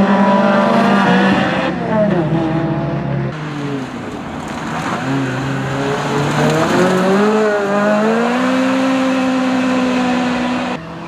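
A sports car engine roars and revs up and down as the car speeds past.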